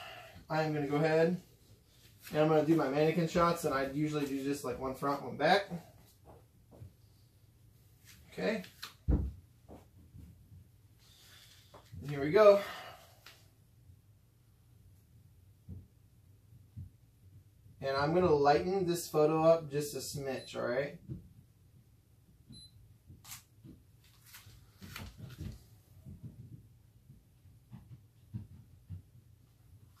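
Cloth rustles as a shirt is handled.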